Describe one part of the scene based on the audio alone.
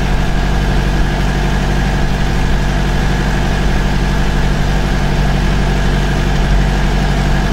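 A car drives along a road.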